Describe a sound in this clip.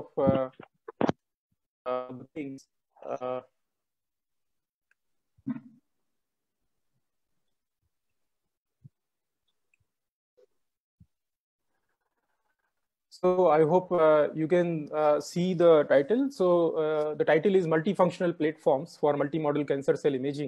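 A man speaks calmly through an online call, pausing at first and then talking steadily.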